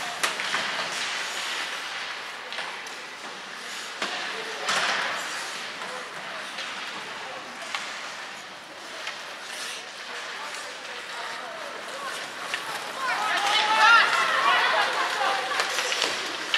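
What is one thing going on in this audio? Skates scrape across the ice in a large echoing arena.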